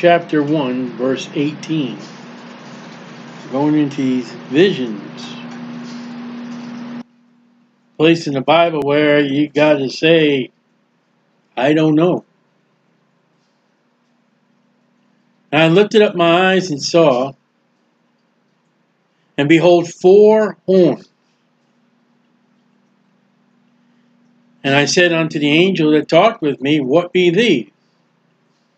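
A middle-aged man reads aloud calmly into a microphone, in short bursts with pauses.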